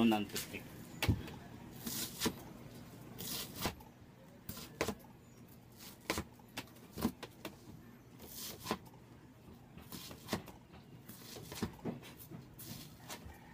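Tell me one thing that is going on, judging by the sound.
A marker scratches and taps against foam.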